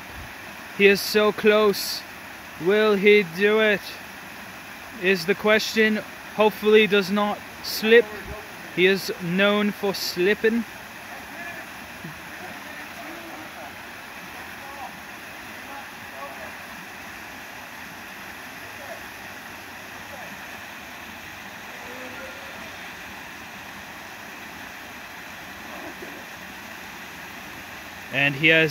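A small waterfall splashes steadily into a pool outdoors.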